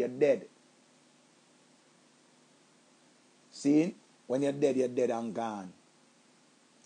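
A middle-aged man speaks calmly and close up, in short bursts with pauses.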